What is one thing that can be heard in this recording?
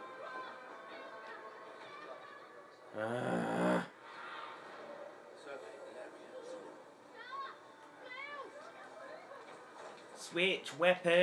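Music from a video game plays softly through a television speaker.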